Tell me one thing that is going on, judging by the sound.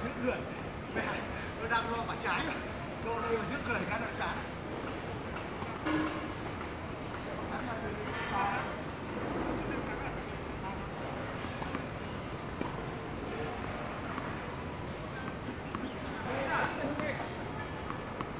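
Men talk to each other at a distance.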